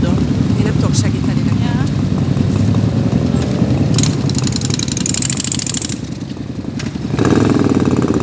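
Several motorcycles ride off one after another, engines revving.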